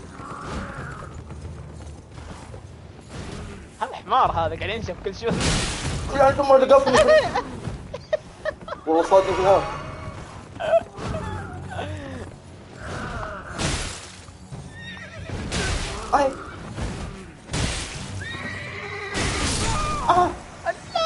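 Horse hooves thud on the ground.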